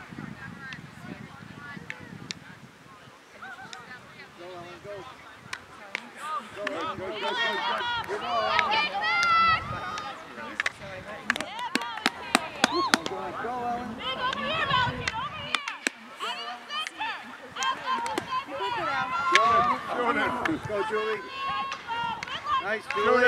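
Hockey sticks clack against a ball and against each other.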